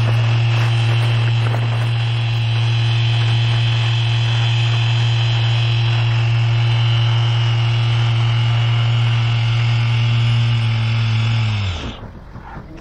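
A small engine hums loudly and steadily, then cuts off.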